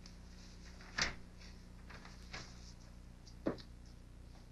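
Papers rustle briefly.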